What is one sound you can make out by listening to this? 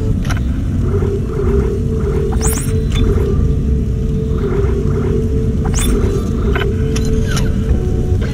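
Menu selections beep and click sharply.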